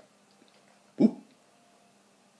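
A dog gives a short, loud bark.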